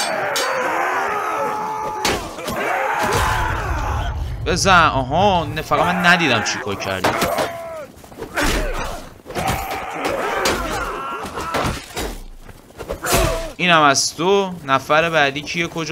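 Swords and shields clash in a battle.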